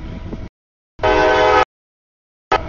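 A train horn blasts loudly.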